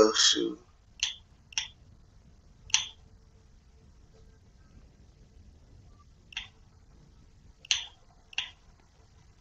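Short soft clicks sound as menu items are selected.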